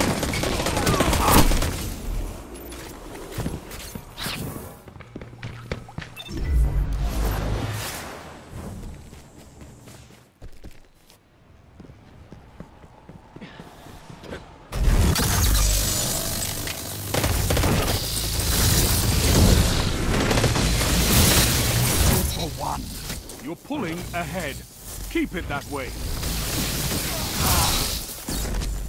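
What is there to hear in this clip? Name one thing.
Gunfire and explosions from a video game crackle and boom.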